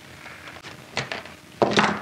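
A hand tool clicks shut on a wire.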